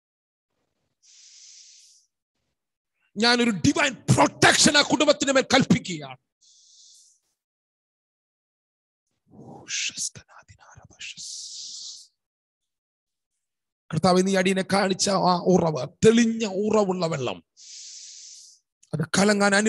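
A man breathes in sharply between phrases.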